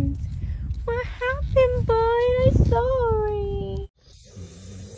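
A small dog's paws scrape and dig in dry dirt.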